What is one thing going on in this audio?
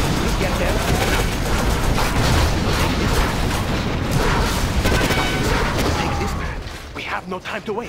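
Explosions boom and crackle in rapid succession.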